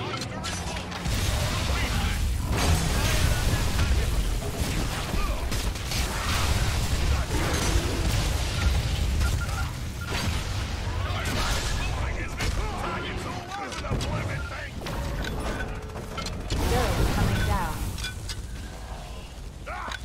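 Heavy weapons fire and explosions rumble loudly.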